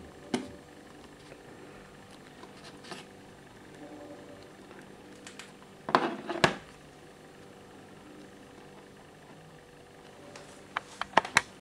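Phones clack and tap against a wooden tabletop as they are handled.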